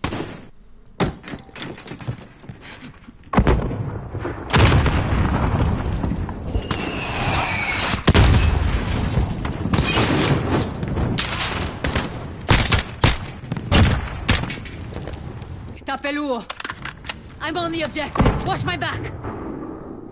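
Gunshots crack in short, rapid bursts.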